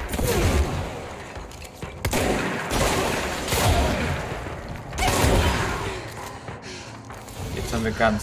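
Loud blasts boom and crash.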